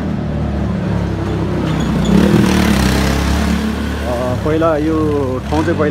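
A motorcycle engine rumbles as it passes close by.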